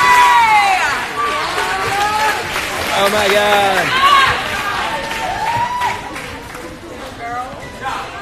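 Young men shout and cheer excitedly nearby in an echoing room.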